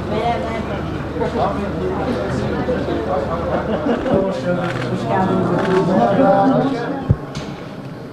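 Several men talk and greet each other close by in a crowd.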